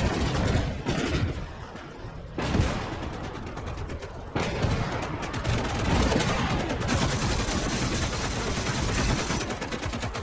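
Tank engines rumble and clank.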